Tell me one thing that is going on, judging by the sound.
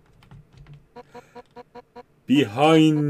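A quick run of short electronic beeps plays.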